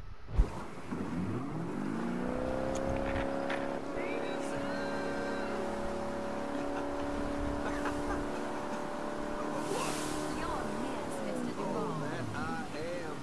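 A motorboat engine starts, revs up and drones steadily, then winds down.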